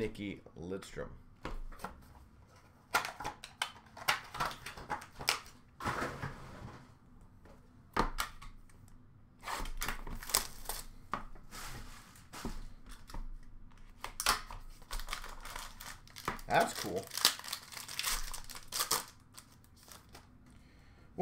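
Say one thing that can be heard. Cards and plastic packs rustle and tap as hands handle them close by.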